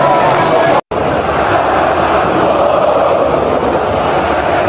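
A distant crowd murmurs and chants across a large stadium.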